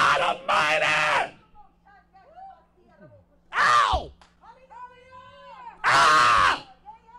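A man preaches loudly into a microphone, shouting in bursts with pauses between.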